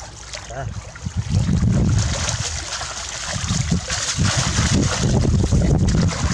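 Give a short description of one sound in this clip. Water splashes and sloshes in a shallow stream.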